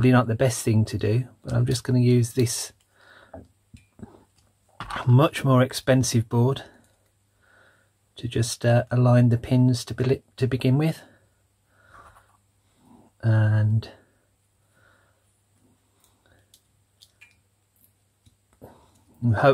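Small plastic and metal parts click softly as hands fit them together.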